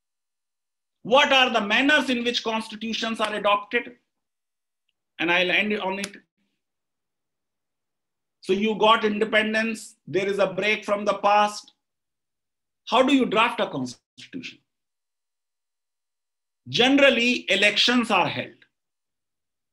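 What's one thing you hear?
A man speaks with animation over an online call, in bursts with pauses.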